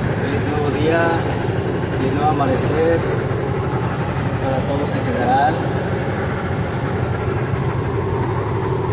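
Tyres roll with a steady hum on the road.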